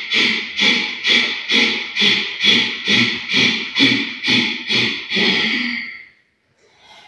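A woman breathes out sharply through her nose in a quick, even rhythm.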